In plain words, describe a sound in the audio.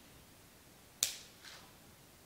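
Scissors snip sharply through a stem.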